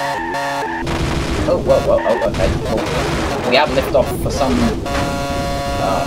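A racing car crashes and scrapes against a barrier.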